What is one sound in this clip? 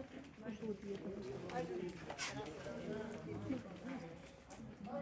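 A small group of men and women talk and murmur nearby outdoors.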